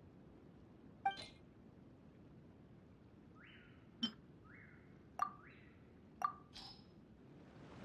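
Soft clicks and chimes sound a few times.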